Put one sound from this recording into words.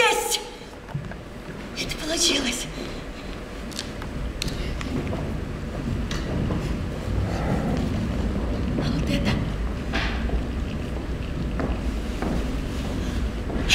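A woman speaks theatrically in a large hall.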